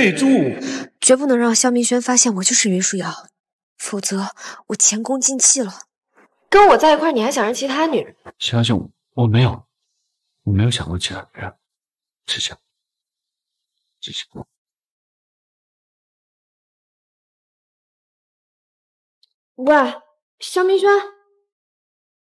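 A young woman speaks emotionally, close by.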